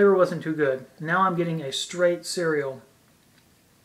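A young man speaks calmly and close up.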